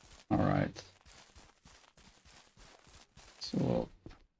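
Footsteps run quickly over grass.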